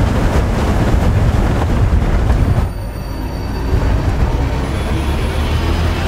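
Wind-whipped waves slosh and churn.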